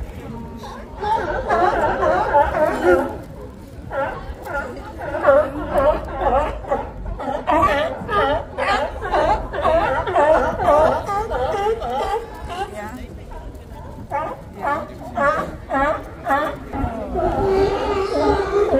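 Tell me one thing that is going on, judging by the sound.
Many sea lions bark and groan loudly close by.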